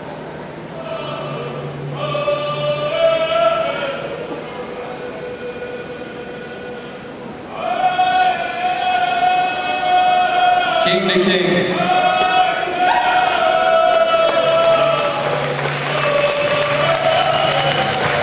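Men and women sing a slow, drawn-out chant.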